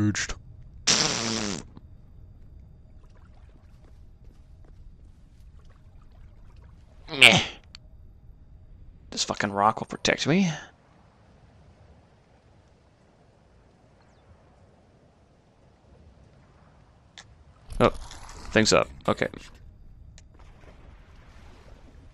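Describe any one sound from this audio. Water splashes and sloshes as someone wades through a shallow stream.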